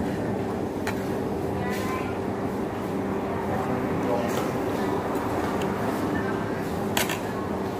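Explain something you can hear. A man chews food with his mouth closed.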